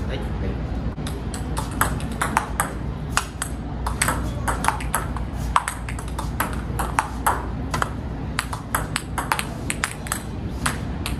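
A table tennis ball clicks against paddles and the table in a quick rally.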